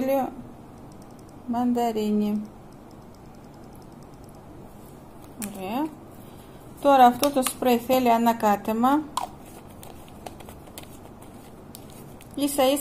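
A middle-aged woman speaks calmly close to the microphone, in short phrases.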